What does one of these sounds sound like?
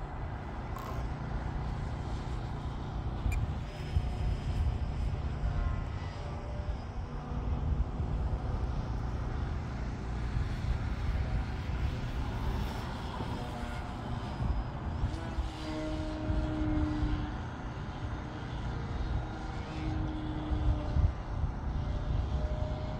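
A small aircraft drones faintly high overhead.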